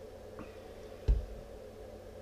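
A glass bottle is set down on a table with a thud.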